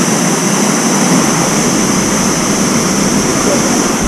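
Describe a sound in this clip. Water splashes as a man swims.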